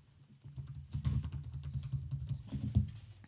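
Fingers tap softly on a laptop keyboard.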